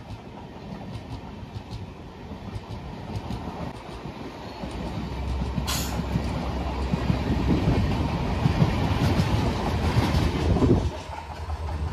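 A passing train rushes by close with a loud rattling roar.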